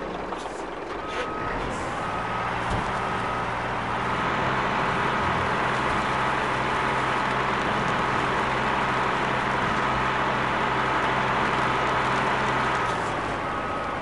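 A tractor engine drones and revs.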